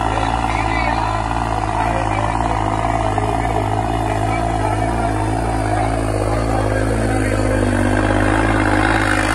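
A tractor engine roars loudly and strains nearby.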